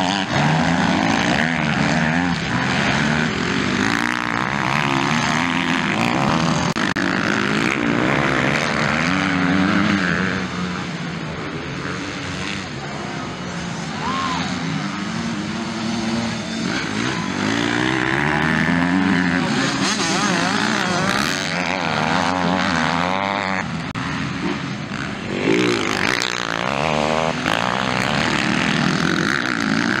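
Motocross bikes rev hard and shift through the gears as they race past.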